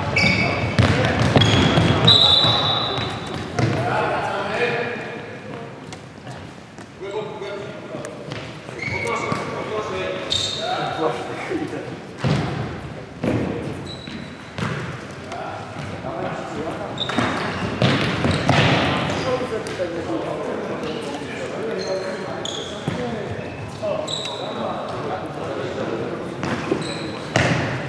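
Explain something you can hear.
Sneakers squeak on a wooden floor in an echoing sports hall.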